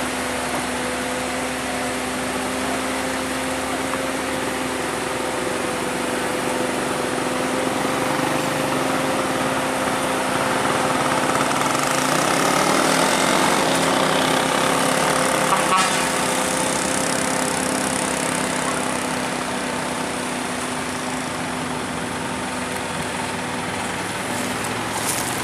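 A heavy truck engine rumbles steadily close by.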